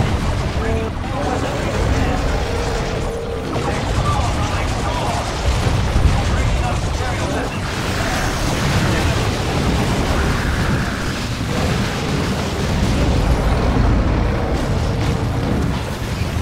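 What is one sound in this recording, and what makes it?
Game battle sounds of weapons firing and explosions rumble steadily.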